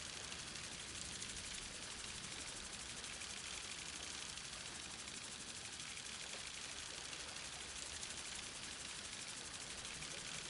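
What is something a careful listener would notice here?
Bursts of confetti pop and flutter from a party cannon.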